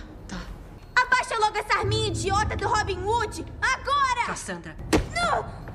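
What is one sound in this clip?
A woman speaks firmly and loudly.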